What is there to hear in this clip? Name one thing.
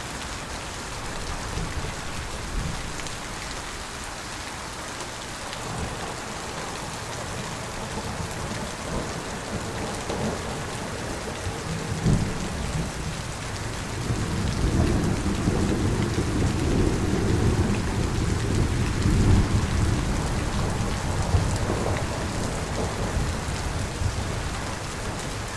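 Heavy rain pours steadily and splashes on wet pavement.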